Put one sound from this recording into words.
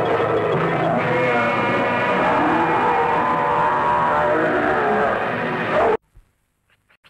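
A large creature roars and growls loudly.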